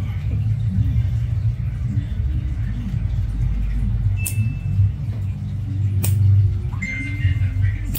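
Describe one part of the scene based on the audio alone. A metal tool clicks and scrapes against a toenail.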